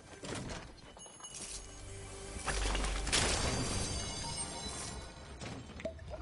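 A treasure chest hums and chimes with a shimmering sound.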